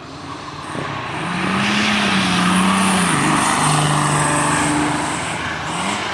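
A racing car engine revs up and down in pitch as it climbs.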